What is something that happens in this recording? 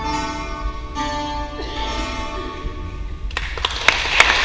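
Two acoustic guitars play a gentle tune in an echoing hall.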